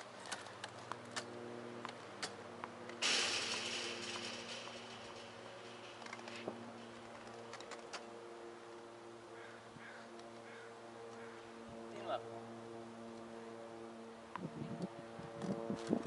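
Wheelchair wheels roll and squeak on a hard court outdoors.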